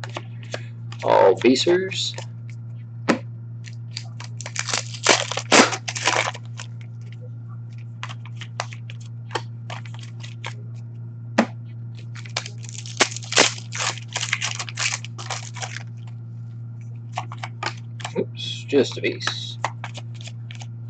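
Plastic wrappers crinkle as they are torn open.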